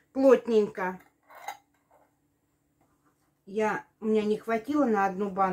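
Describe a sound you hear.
Metal lids clink against glass jars.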